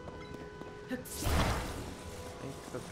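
A magical whoosh swells up suddenly.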